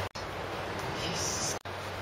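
A plastic sheet rustles and crinkles as it is handled.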